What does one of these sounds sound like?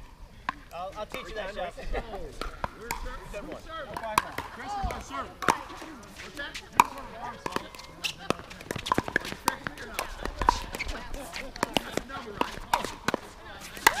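Paddles hit a plastic ball with sharp pops, over and over.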